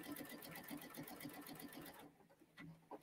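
A sewing machine stitches with a fast, steady whirr, then stops.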